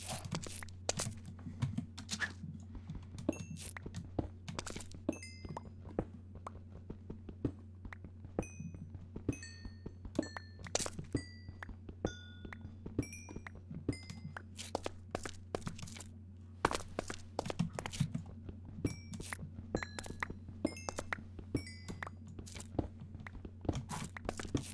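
A pickaxe chips rapidly at stone with quick tapping knocks.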